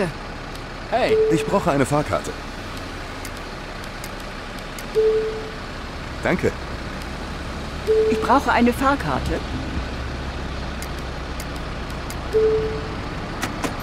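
Short electronic beeps sound now and then.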